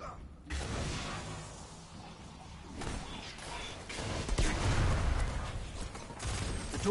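Gunfire and blasts crackle in a video game.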